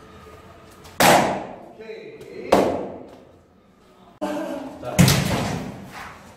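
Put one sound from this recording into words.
A foot kicks a paddle target with a sharp slap.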